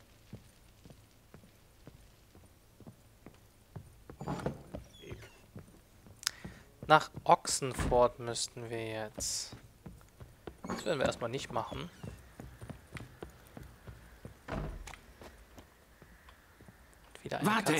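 Footsteps thud on wooden floorboards and ground at a walking pace.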